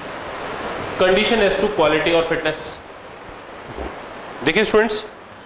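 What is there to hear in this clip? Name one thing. A man speaks clearly and calmly, lecturing close by.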